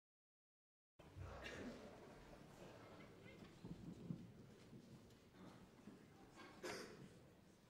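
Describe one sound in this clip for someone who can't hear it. An orchestra plays softly in a large hall.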